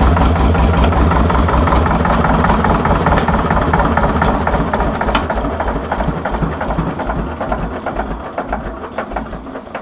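An old tractor engine chugs loudly, slowing and quieting toward the end.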